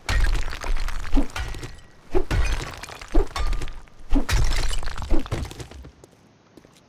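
Stones crack and crumble under repeated heavy blows.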